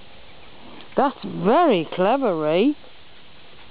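A dog lets out a series of high, wavering yelps.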